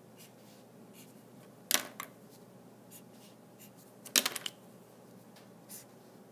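A highlighter marker squeaks and scratches across paper.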